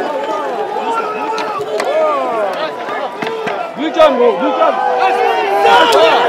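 Several men shout in a scuffle nearby.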